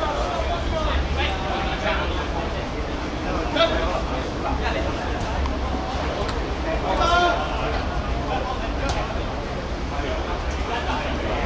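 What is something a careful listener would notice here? Men shout on an outdoor pitch.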